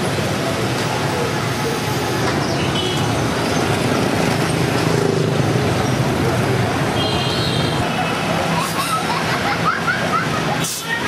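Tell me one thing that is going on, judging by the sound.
Cars drive past on a road.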